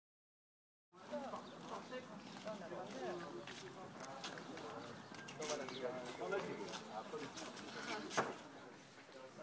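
Young women chat and laugh nearby.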